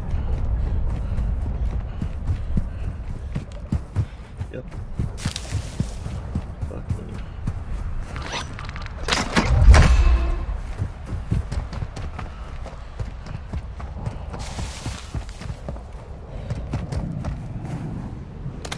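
Quick footsteps run over dirt and gravel.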